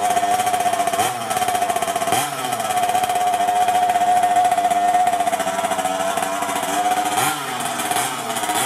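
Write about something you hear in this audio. A small engine revs up briefly a few times.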